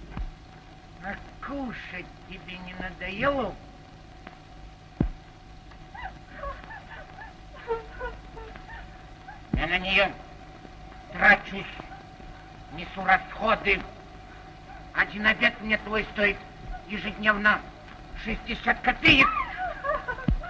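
An elderly man talks with animation nearby.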